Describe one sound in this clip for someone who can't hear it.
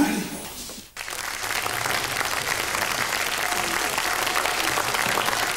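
An audience applauds steadily in a large hall.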